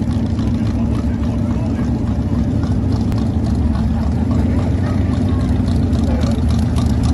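A crowd of people chatters in the distance.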